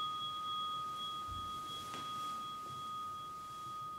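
Clothing rustles as a man bows to the floor.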